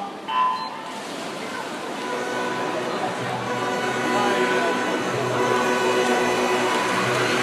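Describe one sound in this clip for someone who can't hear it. A large crowd cheers and shouts in a big echoing hall, growing louder.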